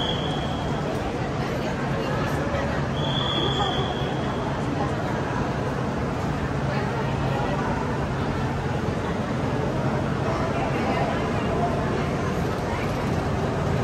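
A train hums steadily as it pulls along a platform.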